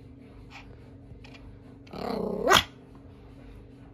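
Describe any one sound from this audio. A small dog pants.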